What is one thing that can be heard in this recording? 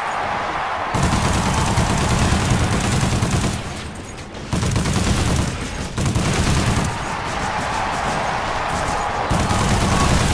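Gunfire and explosions crackle in loud bursts.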